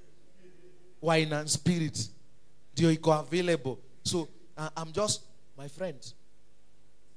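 A man preaches with animation through a microphone and loudspeakers in a reverberant hall.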